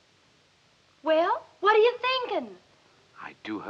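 A woman speaks sharply and with emotion, close by.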